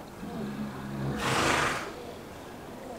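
A horse blows air through its nostrils.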